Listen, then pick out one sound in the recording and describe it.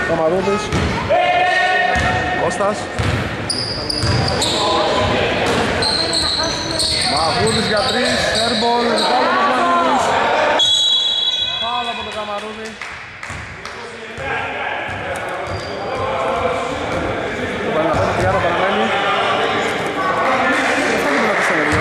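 Men shout and call out across the court.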